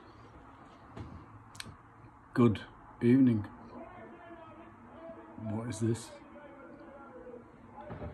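A middle-aged man speaks calmly and close to a phone microphone.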